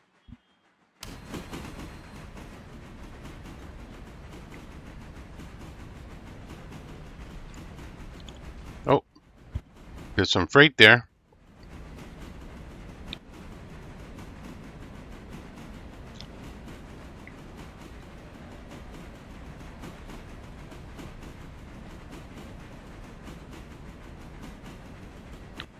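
A steam locomotive chugs steadily along the tracks.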